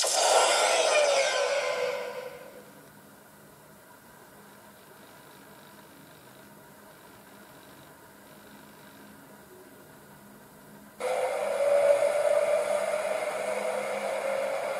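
Music plays from a small phone speaker, fading out and then starting again suddenly.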